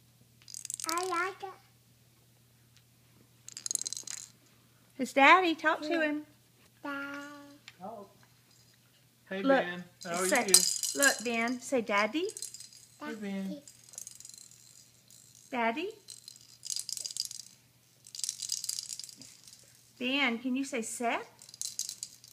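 A toddler boy talks and babbles close by.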